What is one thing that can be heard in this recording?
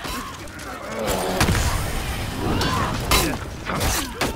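Metal swords clash and clang in a loud melee.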